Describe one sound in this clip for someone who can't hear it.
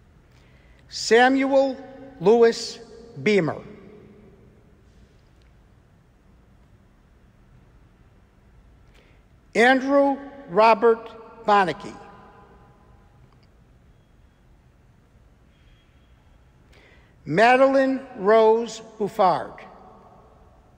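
A man reads out names through a microphone in an echoing hall.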